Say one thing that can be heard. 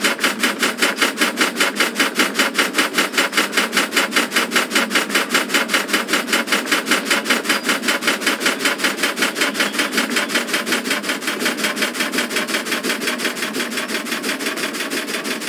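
Train wheels clatter along the rails.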